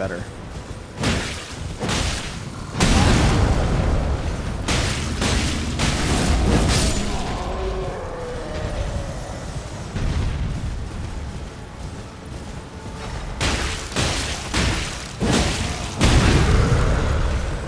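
Heavy blows and crashes thud during a fight.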